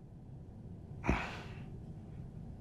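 A man gasps sharply as he wakes.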